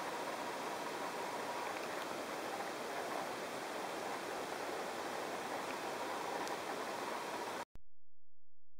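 Wind blows steadily through pine trees outdoors.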